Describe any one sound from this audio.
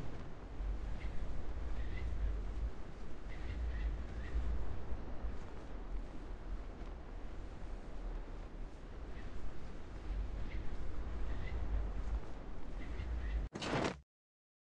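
Wind rushes steadily during a parachute descent.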